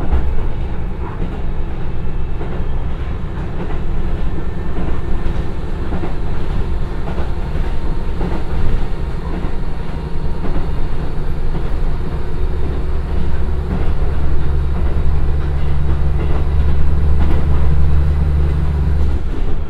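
A diesel train engine drones steadily, growing louder and deeper as the train speeds up.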